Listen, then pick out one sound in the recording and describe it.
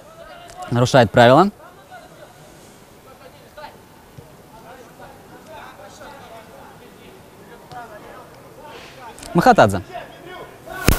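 Young players shout loudly to each other outdoors.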